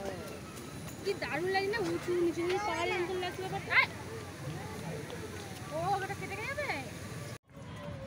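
A young child shouts playfully outdoors.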